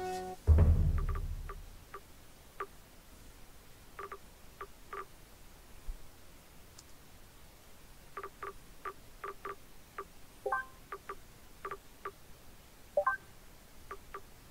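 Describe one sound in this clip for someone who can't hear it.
Soft interface clicks tick again and again.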